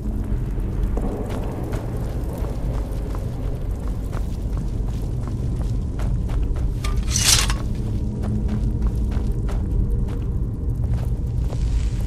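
Footsteps walk on a stone floor.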